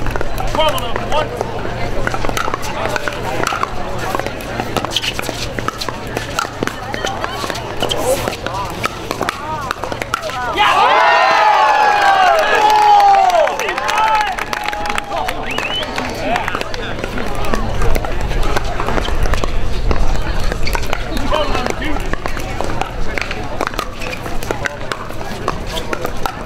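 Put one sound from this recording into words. Paddles pop as a ball is hit back and forth.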